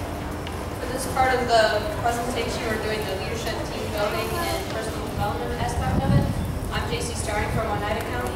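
A young woman speaks calmly into a microphone over loudspeakers in a large tent.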